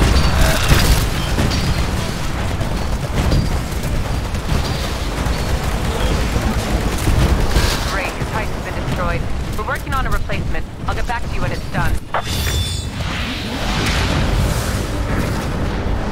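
Loud rumbling explosions and combat noise fill the air.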